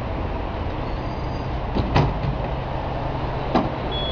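A vending machine's delivery flap clunks open and shut.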